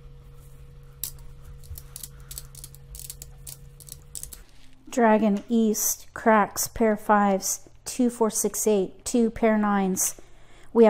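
Tiles click as they are placed into a row.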